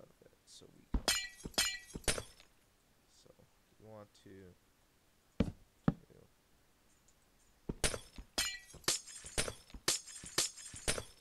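A pickaxe chips rapidly at a block of ice.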